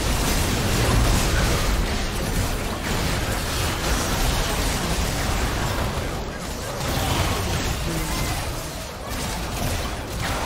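Game spell effects blast and crackle during a fight.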